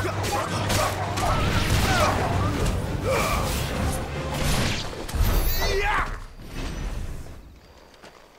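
Weapons clash and strike in a loud fight.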